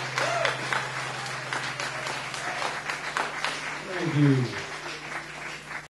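An acoustic guitar is strummed and picked.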